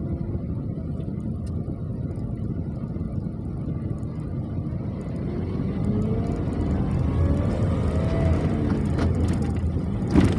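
Motorbikes and cars rumble past nearby in traffic.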